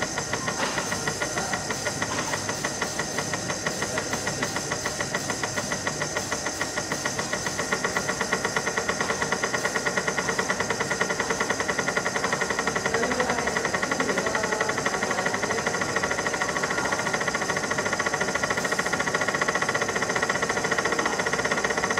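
A laser engraving machine hums and ticks rapidly and steadily.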